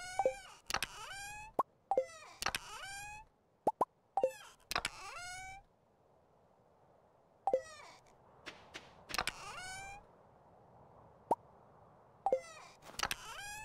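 Short game chimes and clicks sound as items are moved around a menu.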